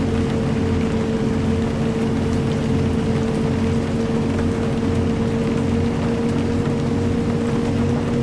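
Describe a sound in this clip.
Rain patters steadily on a windscreen.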